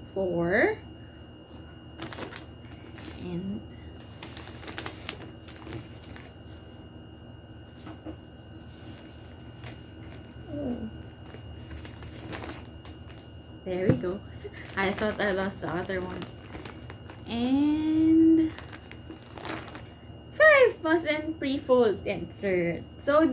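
Paper and plastic packaging rustles and crinkles in hands.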